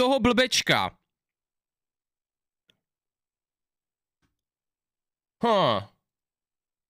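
A young man speaks with animation close to a microphone, in short bursts.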